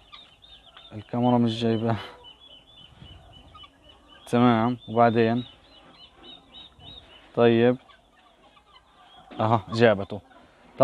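Chickens cluck and chirp softly nearby.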